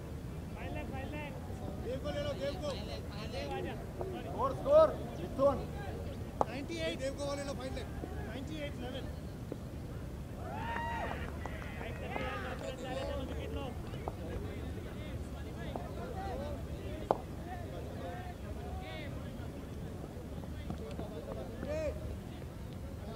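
Men call out and talk across an open field outdoors.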